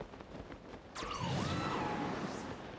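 Wind rushes past in a loud whoosh.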